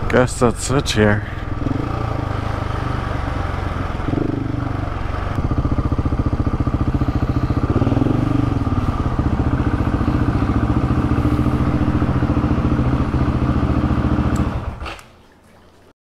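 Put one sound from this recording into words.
A motorcycle engine idles and rumbles steadily up close.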